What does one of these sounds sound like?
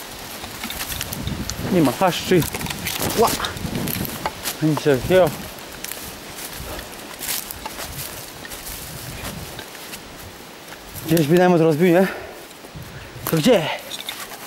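Leaves and twigs rustle as someone pushes through undergrowth.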